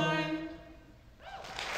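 A group of young men sing together in close harmony and hold a final chord.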